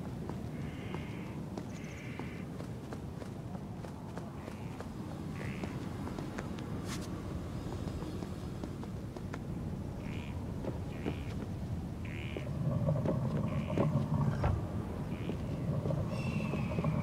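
Footsteps run over stone.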